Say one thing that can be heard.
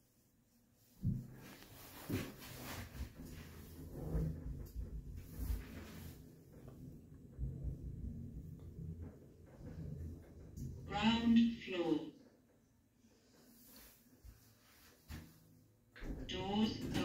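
A lift car hums as it travels between floors.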